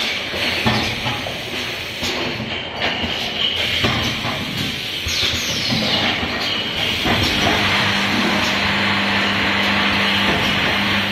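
A bottling machine hums and clatters steadily.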